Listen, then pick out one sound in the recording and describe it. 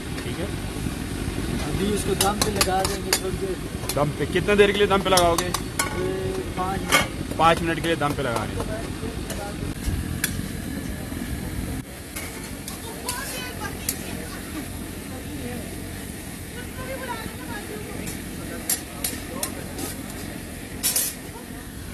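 Food sizzles and crackles in a hot wok.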